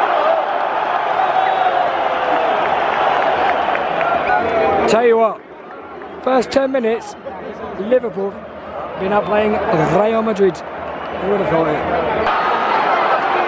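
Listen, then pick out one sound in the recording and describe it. A large crowd chants and sings in unison, echoing around an open stadium.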